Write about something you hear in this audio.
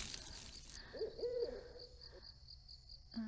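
A young woman gasps softly.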